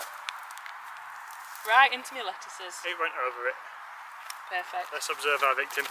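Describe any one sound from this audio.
A garden fork scrapes and digs into dry soil.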